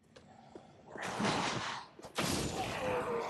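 A heavy axe strikes with a loud crash.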